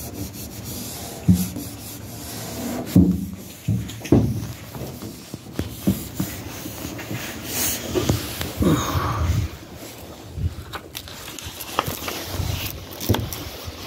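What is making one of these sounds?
A plastic film rubs and crinkles against a smooth surface.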